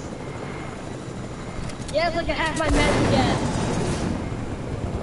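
A helicopter's rotor thumps steadily as it flies.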